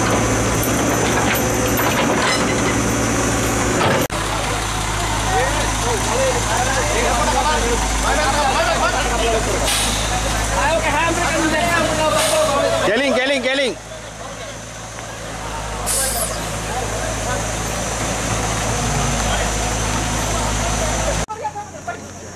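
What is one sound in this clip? A heavy truck engine rumbles and strains.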